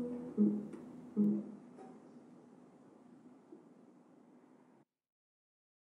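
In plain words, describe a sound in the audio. A piano plays soft chords that ring out and fade away.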